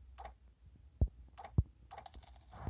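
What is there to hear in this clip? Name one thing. Short sharp clicks sound as menu items are selected.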